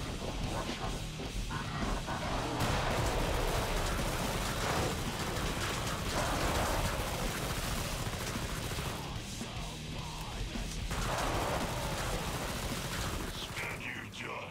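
Rapid gunfire blasts loudly and steadily.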